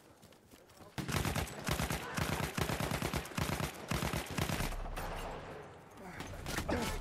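A submachine gun fires rapid bursts close by.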